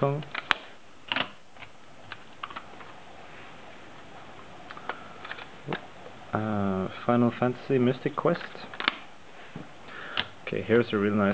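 Plastic cartridge cases click and clack as a hand handles them.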